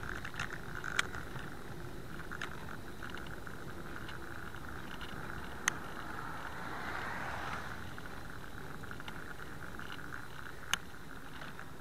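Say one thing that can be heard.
A bicycle rattles with occasional sharp knocks over bumps.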